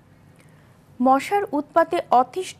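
A woman reads out news clearly into a microphone.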